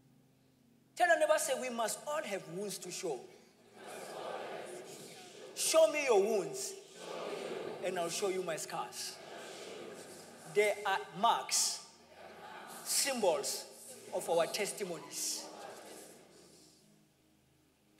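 A young man speaks with animation into a microphone in a large echoing hall.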